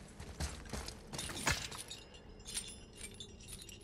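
A chain rattles as it is climbed.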